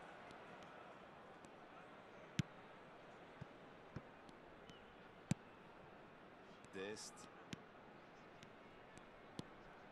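A stadium crowd murmurs steadily in the background.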